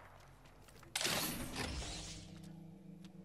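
A metal supply crate opens with a whirring clank.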